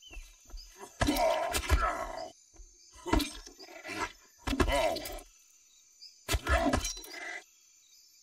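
A large creature growls and roars in short bursts.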